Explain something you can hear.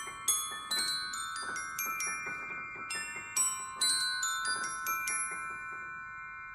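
A piano plays a quick, bright melody.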